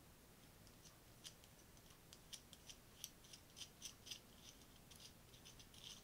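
Small metal parts click and tick softly as they are handled.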